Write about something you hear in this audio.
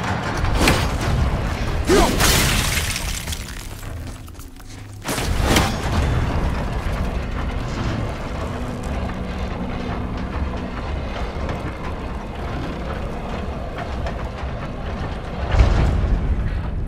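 An axe strikes a metal mechanism with a sharp clang.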